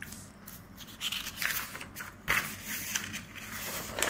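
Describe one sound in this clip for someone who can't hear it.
Paper rustles as a hand moves a sheet.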